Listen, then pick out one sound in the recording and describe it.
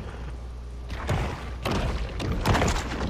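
A shark bites down with a wet crunch.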